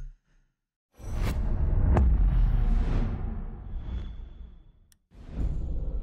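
A deep booming whoosh swells and slowly fades.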